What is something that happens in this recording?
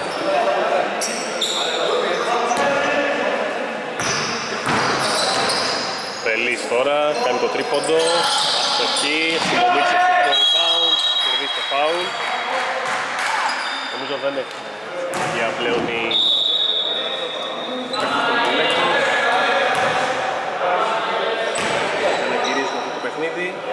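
Men shout and call out to each other in an echoing hall.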